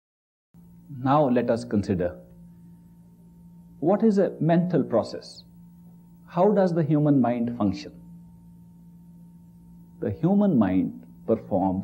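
A man speaks calmly and clearly into a microphone, in short phrases with pauses.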